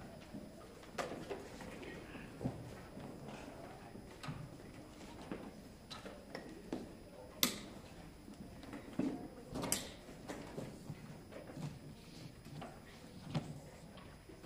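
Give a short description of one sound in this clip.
Music stands and instruments knock and clatter as a band sets up.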